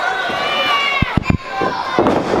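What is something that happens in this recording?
A wrestler's body thuds onto the ring mat.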